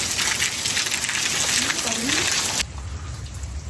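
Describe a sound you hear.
Heavy rain pours down and splashes on wet ground and puddles.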